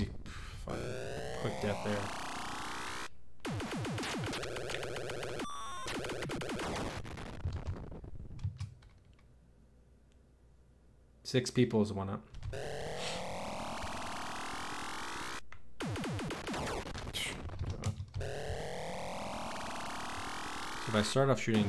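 Electronic arcade game sounds zap, sweep and buzz rapidly.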